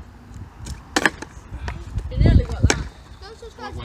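A skateboard clatters sharply on concrete.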